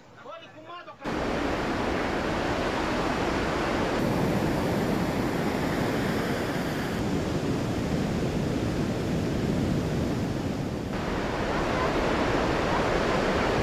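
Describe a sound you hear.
Surf roars and breaks steadily outdoors.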